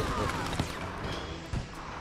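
Gunshots crack in a large echoing space.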